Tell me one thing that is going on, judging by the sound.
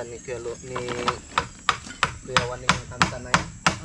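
A tool taps and knocks sharply against wood.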